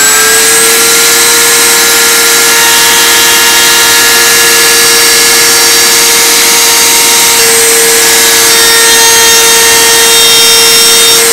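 A router motor whines loudly and steadily while cutting wood.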